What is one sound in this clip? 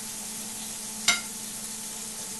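A metal pot lid clanks once.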